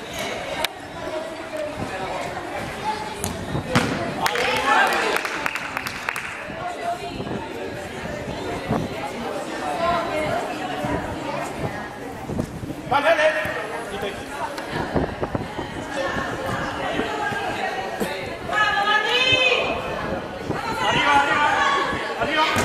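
A crowd of young women chatters and shouts in a large echoing hall.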